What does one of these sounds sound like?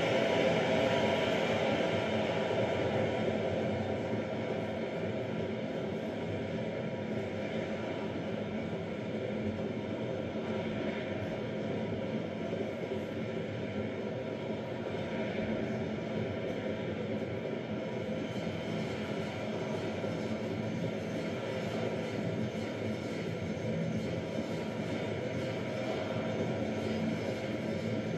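A stadium crowd cheers and roars steadily through a television speaker.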